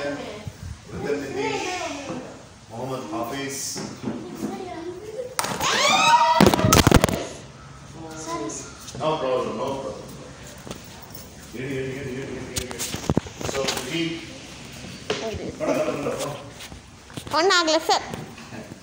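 Children talk and shout excitedly close by, in a room with a slight echo.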